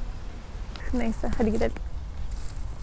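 A young woman speaks softly, close to a phone microphone.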